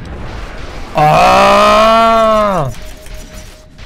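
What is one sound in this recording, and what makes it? A loud magical blast booms and rings out from a game.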